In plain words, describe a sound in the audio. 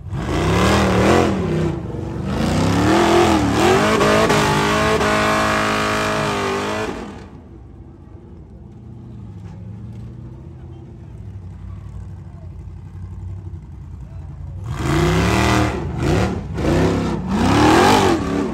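An off-road vehicle's engine revs hard and roars in bursts, then idles low before roaring again.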